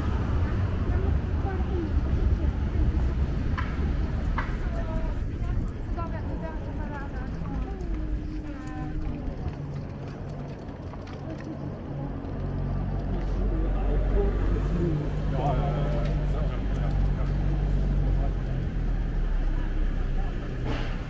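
Traffic rumbles steadily in a busy street outdoors.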